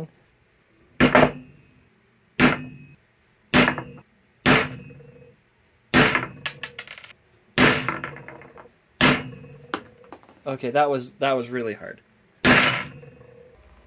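A hammer strikes a small hard object with sharp knocks.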